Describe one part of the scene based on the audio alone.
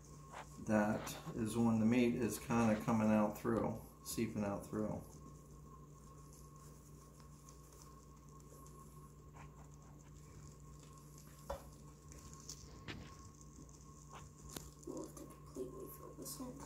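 Hands squeeze and twist a stuffed sausage casing with a soft rustle.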